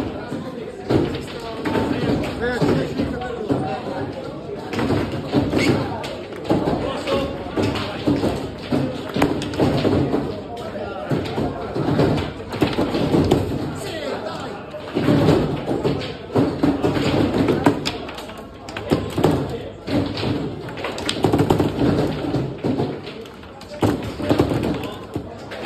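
Foosball rods clack and the ball knocks against plastic players.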